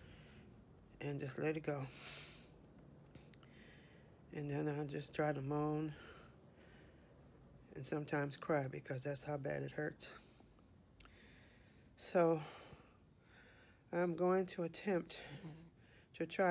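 A middle-aged woman speaks calmly and close to a microphone, in short bursts with pauses.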